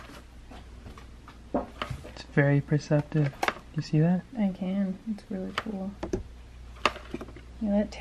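A brush handle taps softly on paper.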